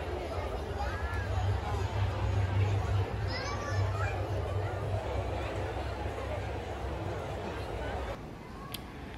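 A large audience chatters in an echoing hall.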